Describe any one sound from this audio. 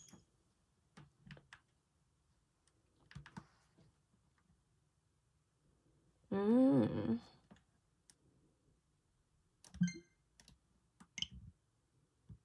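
Buttons click softly on a handheld console.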